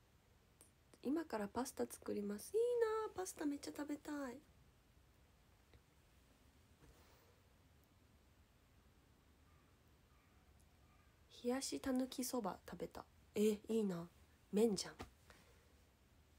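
A young woman speaks calmly and close to a microphone, with pauses.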